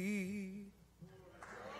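A woman sings with a wavering voice through a microphone.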